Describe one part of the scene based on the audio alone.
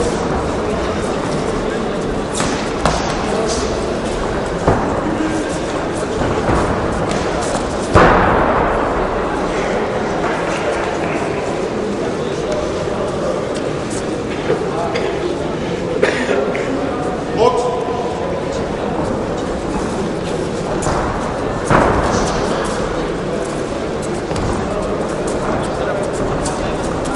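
Spectators murmur and shout in a large echoing hall.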